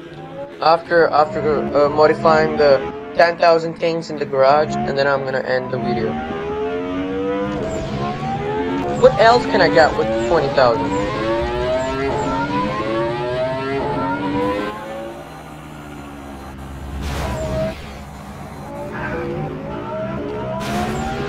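A car engine roars and revs up through its gears.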